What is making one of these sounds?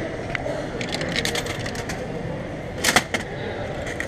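A small metal door clicks open.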